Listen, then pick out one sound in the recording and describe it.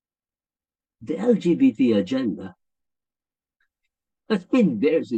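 A middle-aged man speaks calmly through a microphone on an online call.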